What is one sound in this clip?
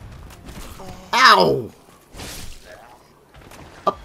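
A sword slashes and strikes a foe.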